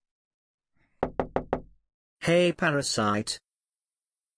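An older man speaks loudly and sternly.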